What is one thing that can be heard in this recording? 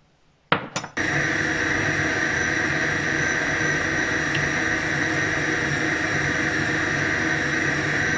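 A stand mixer whirs steadily.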